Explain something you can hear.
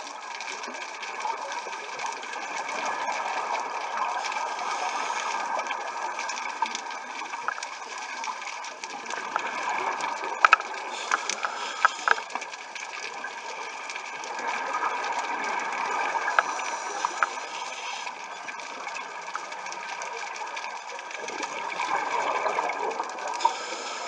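Water hisses and rushes in a muffled underwater wash that swells and fades.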